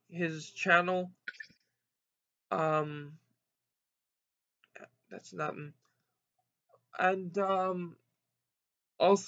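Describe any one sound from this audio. A young man speaks calmly and close up, in short bursts with pauses.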